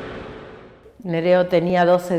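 A middle-aged woman speaks calmly, close to a microphone.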